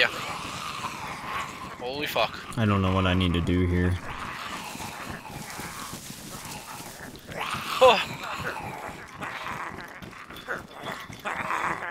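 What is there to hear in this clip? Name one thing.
Footsteps run quickly over gravel and grass.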